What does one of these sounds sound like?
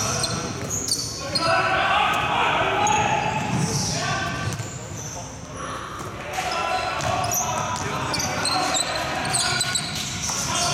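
Young men call out to each other across an echoing court.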